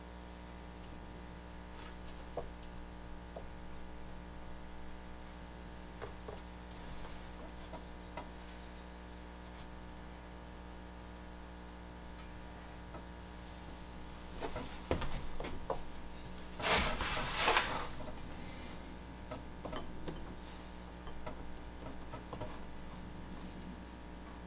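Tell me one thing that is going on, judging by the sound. Ceramic pieces clink and scrape on a work table.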